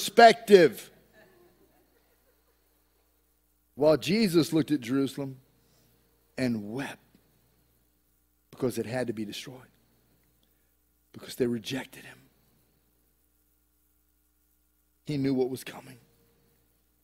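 A middle-aged man speaks with pauses into a microphone, heard over loudspeakers.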